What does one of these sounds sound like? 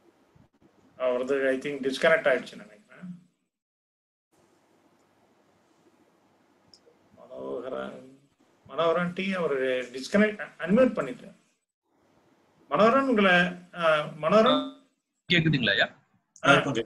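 An elderly man speaks calmly and thoughtfully, close by, with pauses.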